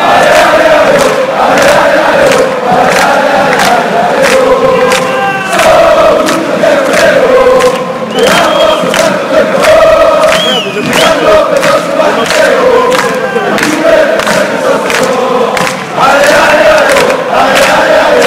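A young man close by sings along loudly.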